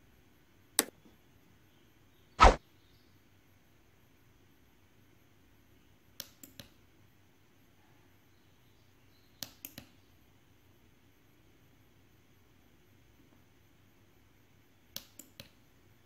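Small push buttons click several times, close by.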